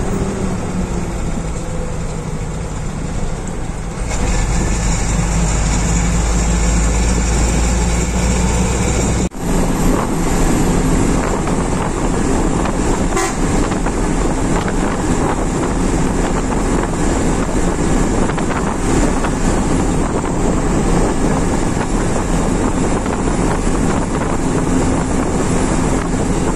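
Wind and road noise rush past the open window.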